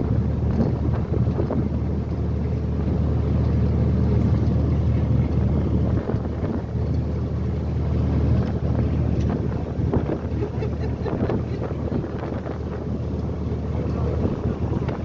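A boat's engine rumbles steadily.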